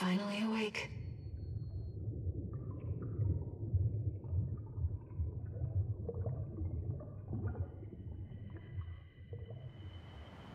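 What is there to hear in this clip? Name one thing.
Water churns with a deep, muffled underwater rumble.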